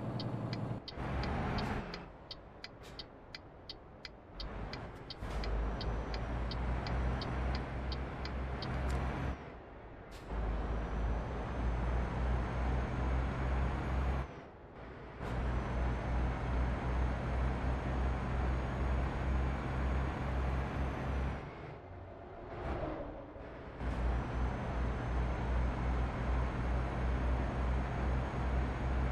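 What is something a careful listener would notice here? A truck engine drones low and steady, dropping away a few times.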